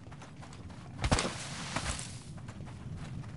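An explosion booms nearby with a short rumbling tail.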